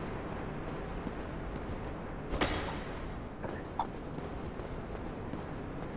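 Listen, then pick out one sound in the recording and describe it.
Armoured footsteps thud on a stone floor.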